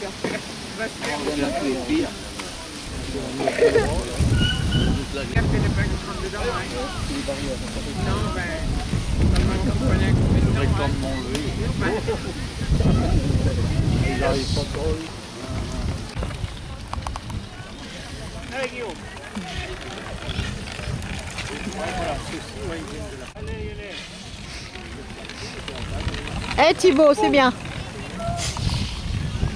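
Bicycle tyres roll and rattle over bumpy grass.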